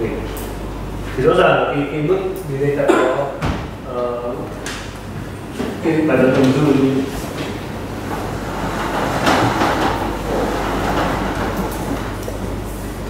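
A man lectures in a large room.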